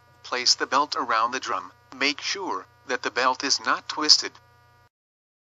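A man speaks calmly and explains, close by.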